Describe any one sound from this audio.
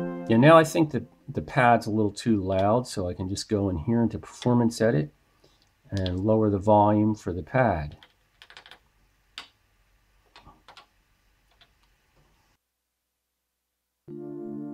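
A synthesizer plays a run of short, bending tones.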